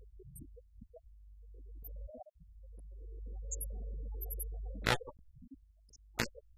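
A man speaks quietly at a distance in a large room.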